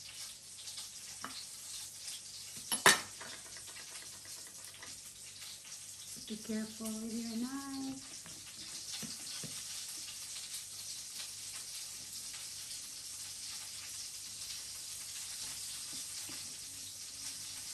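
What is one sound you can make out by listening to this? A knife scrapes and taps on a plate.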